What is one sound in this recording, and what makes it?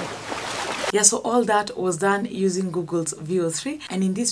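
A young woman talks cheerfully and with animation close to a microphone.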